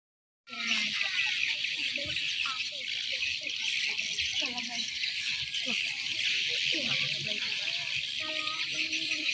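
A crowd of people murmurs and chatters in the distance outdoors.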